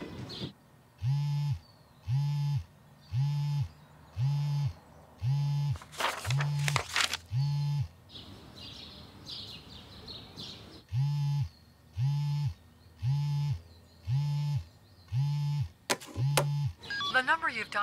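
A phone ringing tone repeats through a handset.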